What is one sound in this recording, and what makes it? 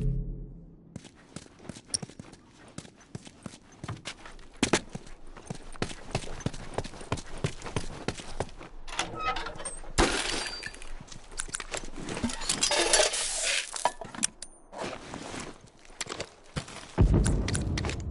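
Footsteps scuff on gravel and grass.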